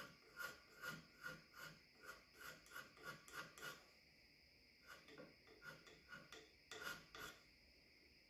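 A metal file rasps in short, even strokes.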